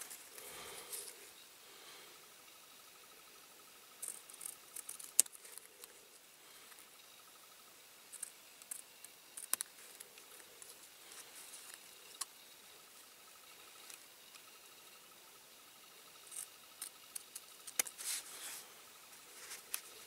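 Small scissors snip through thin card with sharp clicks.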